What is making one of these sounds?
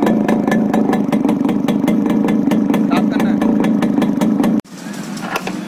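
A motorcycle engine idles with a rapid, steady putter.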